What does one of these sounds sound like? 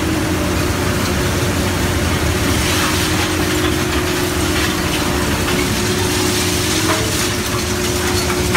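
Scrap metal crunches and clatters inside a shredder.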